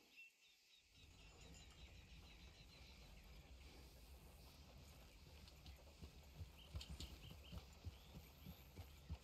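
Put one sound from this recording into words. A horse's hooves clop on a dirt track as it walks.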